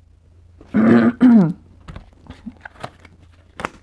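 Playing cards tap and rustle as a deck is picked up.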